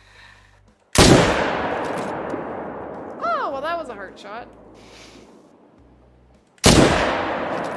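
A rifle shot booms loudly and rings out.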